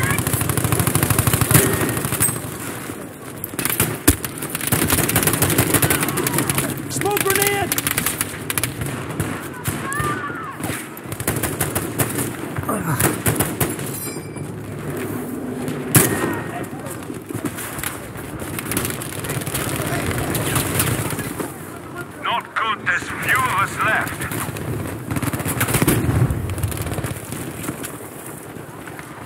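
Gunfire cracks again and again.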